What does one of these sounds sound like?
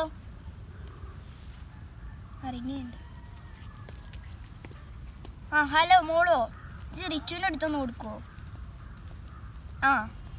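A boy speaks into a phone.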